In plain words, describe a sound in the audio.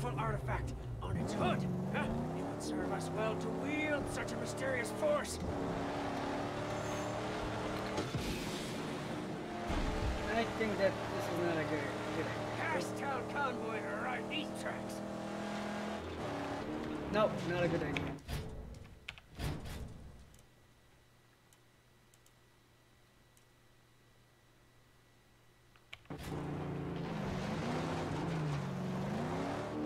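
A car engine roars and revs as it drives.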